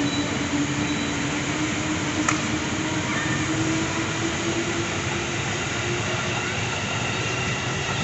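A train's motor whines with a steady tone that slowly rises.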